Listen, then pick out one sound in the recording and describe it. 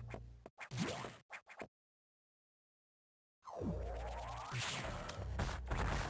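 Electronic video game music plays.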